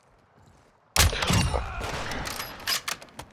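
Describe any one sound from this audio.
A rifle fires a loud shot.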